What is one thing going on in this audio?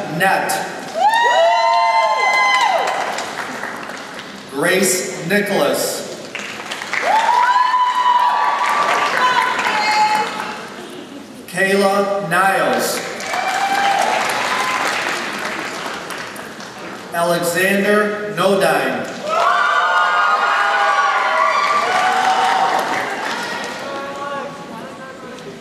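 People in the crowd cheer and whoop loudly.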